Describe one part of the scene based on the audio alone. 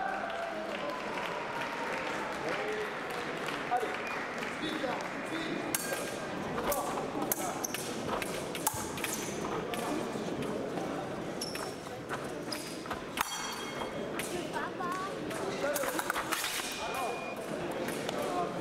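Fencers' feet shuffle and stamp quickly on the floor.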